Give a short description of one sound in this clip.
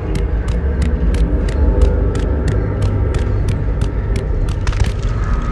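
Footsteps run quickly across a stone floor.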